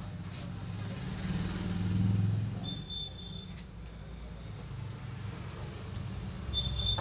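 Hands rub and knead oiled skin.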